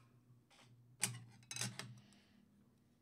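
A hard plastic case clicks and taps as it is handled.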